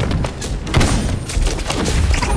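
A magic blast bursts with a bright crackling whoosh.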